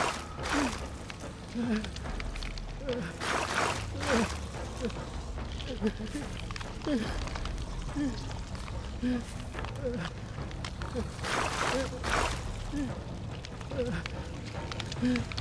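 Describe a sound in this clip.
Slow footsteps tread over the ground.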